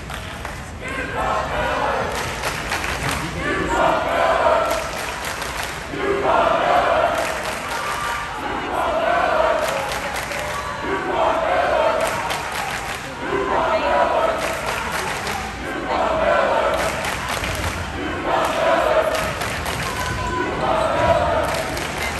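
A group of young women chant loudly in unison, with echo.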